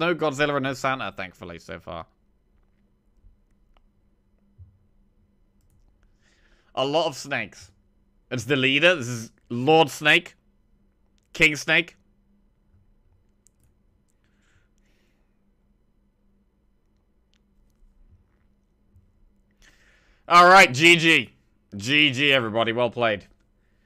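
A young man talks with animation, close to a headset microphone, in short bursts.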